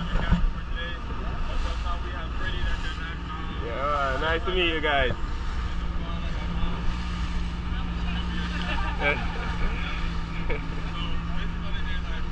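Water splashes and rushes past a boat's hull.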